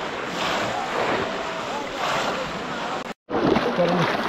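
Water splashes as people wade through shallow water.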